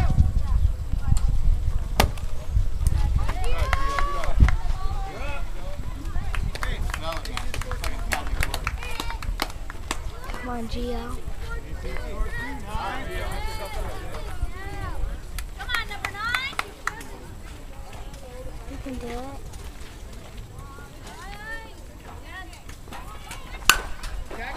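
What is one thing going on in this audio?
Young players call out and cheer across an open field.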